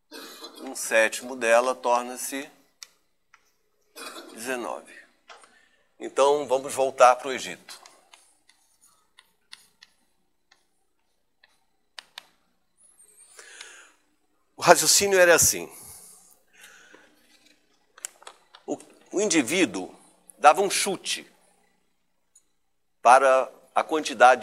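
An elderly man speaks calmly, explaining at an even pace.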